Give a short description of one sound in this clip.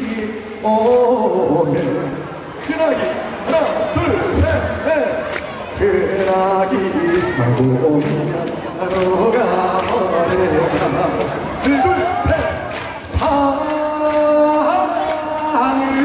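Backing music plays loudly through loudspeakers.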